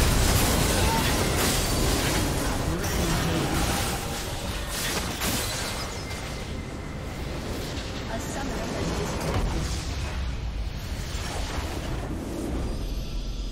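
Rapid magical blasts and impacts crackle and boom in a busy battle.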